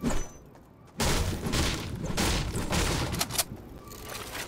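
A pickaxe strikes wood in quick, loud blows.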